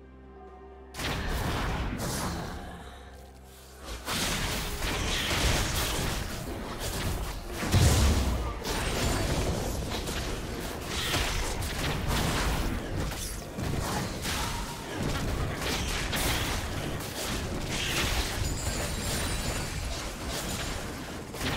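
Game spell effects whoosh, crackle and clash in a fight.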